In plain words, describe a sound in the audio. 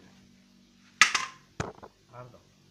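A heavy metal part clanks down onto concrete.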